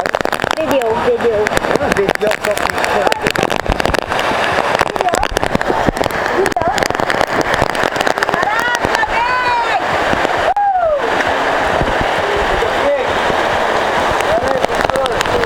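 Heavy rain pours down.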